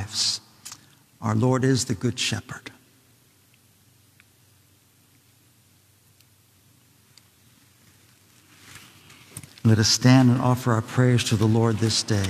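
A man speaks calmly, echoing in a large reverberant hall.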